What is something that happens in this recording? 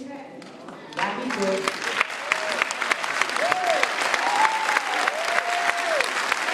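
A crowd claps hands quickly and steadily.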